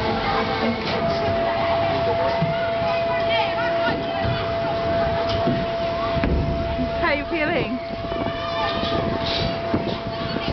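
A young woman talks and laughs close by, outdoors.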